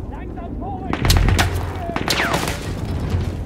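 Gunfire cracks in short bursts nearby.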